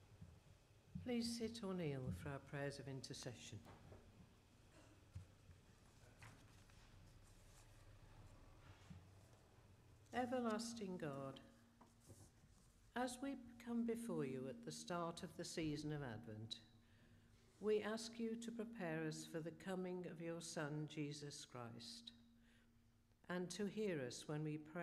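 An elderly woman speaks calmly into a microphone in a reverberant hall.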